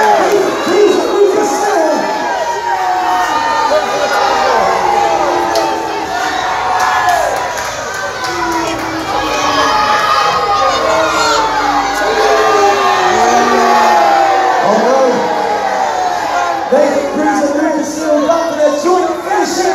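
A large crowd cheers and shouts throughout, echoing in a big hall.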